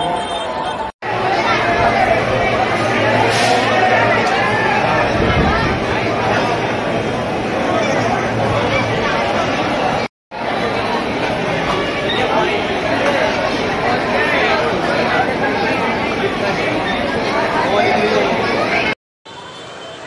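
A large crowd chatters loudly in an echoing space.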